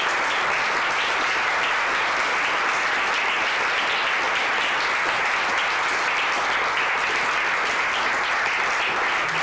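Several women clap their hands in steady applause in an echoing hall.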